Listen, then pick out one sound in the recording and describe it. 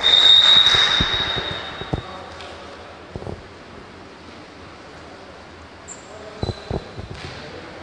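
A volleyball thuds on the court floor.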